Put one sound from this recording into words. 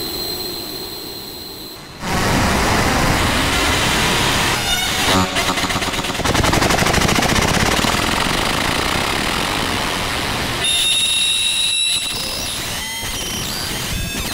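A modular synthesizer plays shifting electronic tones and noisy textures.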